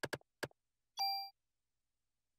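A bright electronic chime rings once.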